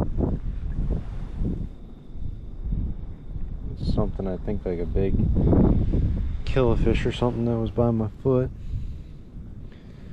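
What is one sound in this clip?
Water laps gently nearby.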